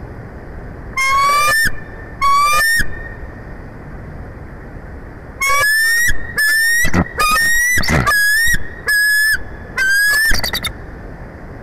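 Bald eagles call in loud, high, chattering bursts close by.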